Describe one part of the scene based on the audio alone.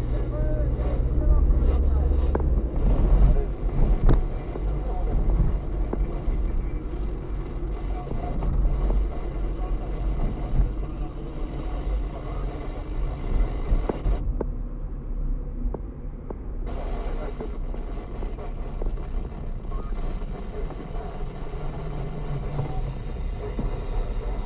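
A car engine hums steadily from inside the cabin as the car drives.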